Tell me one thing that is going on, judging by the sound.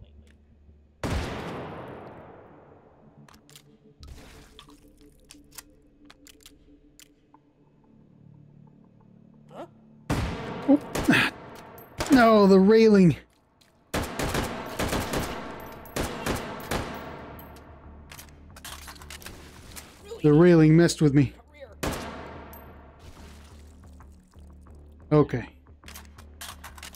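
Rapid gunfire bursts out in loud volleys with echoing tails.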